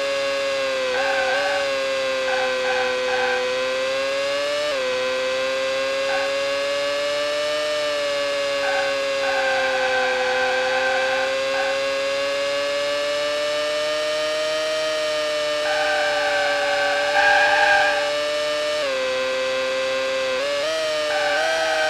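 Tyres squeal in short bursts through the corners.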